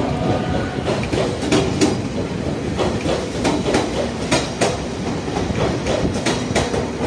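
A train clatters past close by over rail joints.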